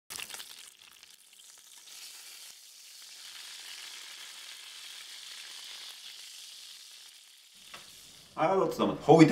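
Meat sizzles and spits in hot oil.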